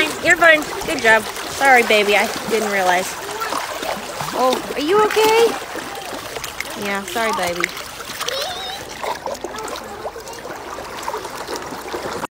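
Shallow water splashes as dogs wade through it.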